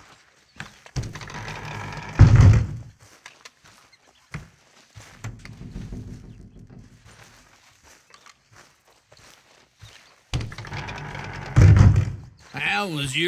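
A heavy wooden door creaks and swings open.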